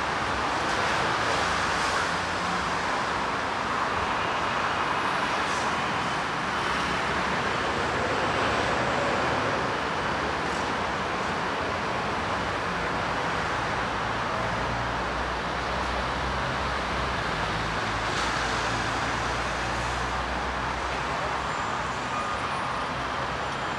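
Footsteps tap on a paved sidewalk.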